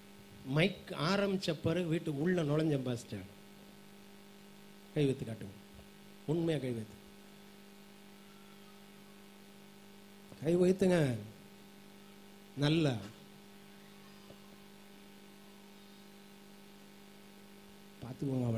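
A man speaks with emphasis into a microphone, in short bursts with pauses.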